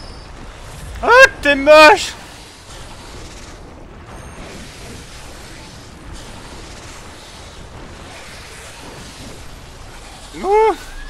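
A large creature lets out loud, wailing shrieks.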